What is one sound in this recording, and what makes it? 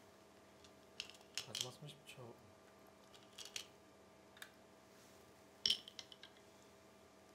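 Stones rattle and clack in a wooden bowl.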